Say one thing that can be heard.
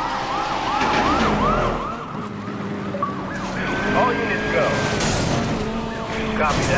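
A car engine roars at high speed.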